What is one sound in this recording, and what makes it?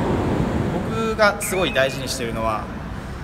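A young man speaks clearly into a microphone, close by.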